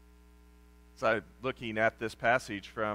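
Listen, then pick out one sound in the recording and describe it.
An older man speaks calmly through a microphone, reading out.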